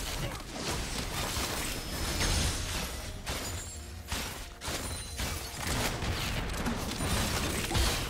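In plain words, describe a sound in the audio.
Magic blasts and hits crackle and burst in a fast skirmish.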